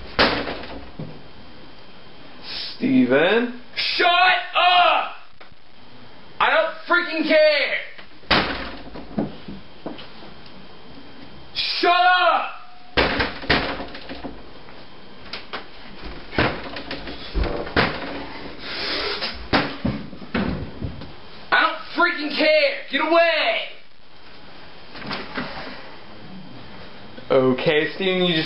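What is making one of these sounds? Bare feet thump and shuffle on a floor nearby.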